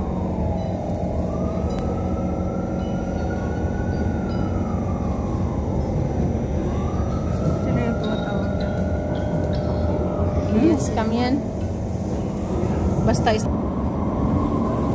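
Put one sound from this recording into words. Train wheels hum and whine, rising and falling in pitch.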